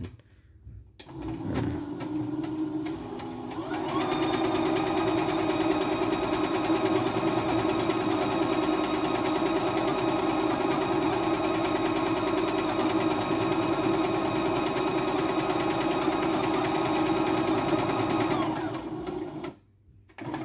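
A sewing machine starts up, speeds up and stitches steadily with a fast whirring hum.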